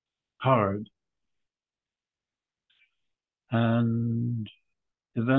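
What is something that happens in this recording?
An elderly man speaks slowly and calmly over an online call.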